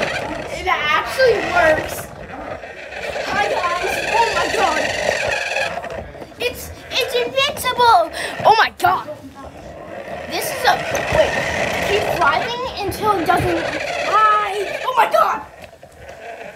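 A small toy car motor whirs and whines as it drives.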